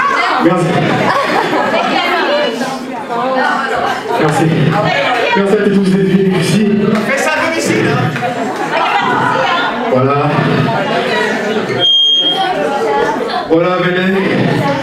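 A young man raps loudly through a microphone and loudspeakers in an echoing room.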